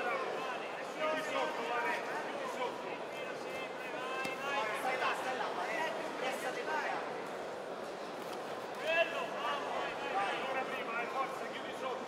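A crowd of men shout and cheer loudly in an echoing hall.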